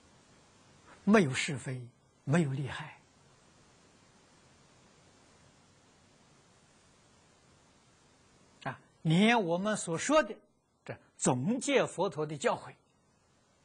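An elderly man speaks calmly into a microphone, in short phrases with long pauses.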